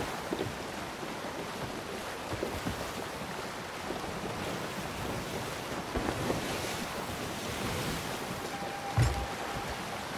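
Wind blows steadily over the water.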